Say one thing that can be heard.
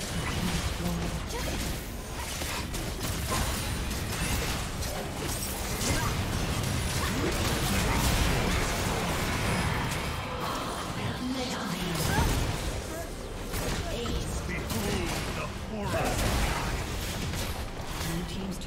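Spell effects crackle and blast in a game battle.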